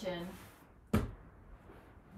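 A foam roller knocks against the floor.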